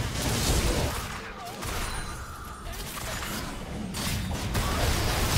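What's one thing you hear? Game spells and weapon strikes crackle and thud in a busy fight.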